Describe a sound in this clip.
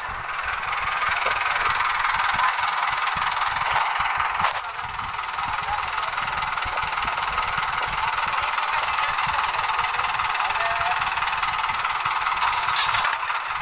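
A tractor engine runs with a steady, loud rumble.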